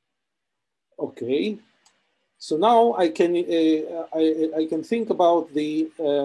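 A man speaks calmly through a microphone, as if in an online call.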